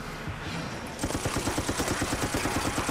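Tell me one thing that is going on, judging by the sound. A rapid burst of gunfire rattles.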